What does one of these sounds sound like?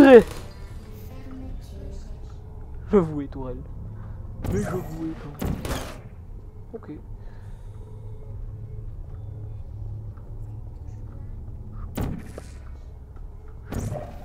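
A sci-fi energy gun fires with short zapping bursts.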